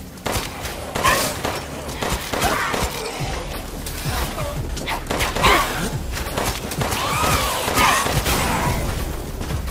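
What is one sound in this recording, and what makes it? Creatures growl and snarl nearby.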